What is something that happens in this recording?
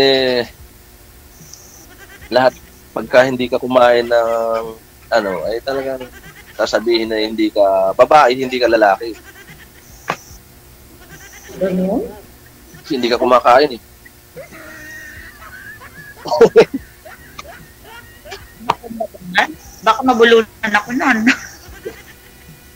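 A middle-aged man talks over an online call.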